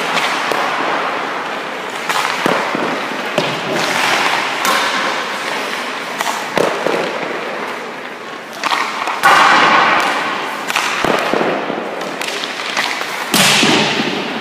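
Pucks thud against a goalie's pads.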